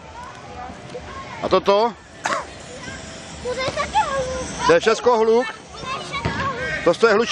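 Young boys shout and call out excitedly nearby, outdoors.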